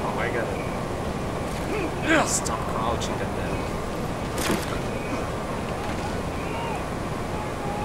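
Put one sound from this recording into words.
Footsteps thud quickly on a roof.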